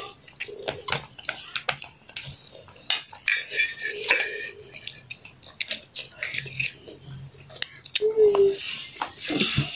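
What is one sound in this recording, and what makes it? Chopsticks click against a plastic tray.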